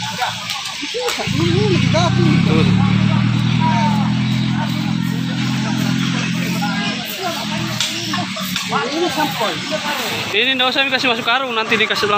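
Several men and women talk and call out outdoors.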